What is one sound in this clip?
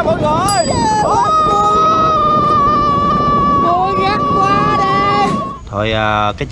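A young woman screams loudly and close by.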